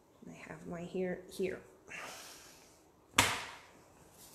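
A soft sheet of dough is flopped down onto a table.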